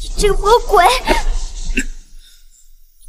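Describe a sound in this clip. A young man speaks angrily.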